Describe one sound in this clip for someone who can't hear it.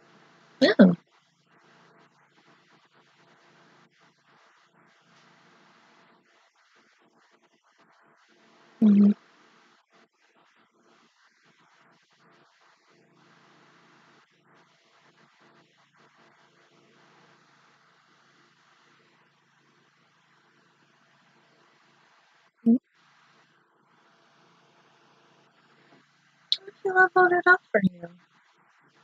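A young woman speaks in short bursts, close to a microphone.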